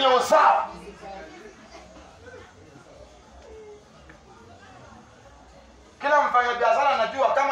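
A man shouts loudly through a megaphone outdoors.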